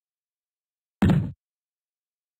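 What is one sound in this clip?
A small wooden door swings open with a thud.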